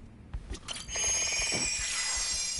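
A bright magical shimmer rings out.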